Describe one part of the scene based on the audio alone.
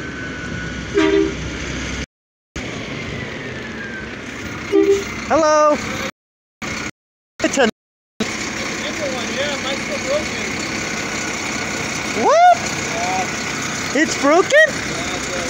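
A large truck engine idles nearby with a steady rumble.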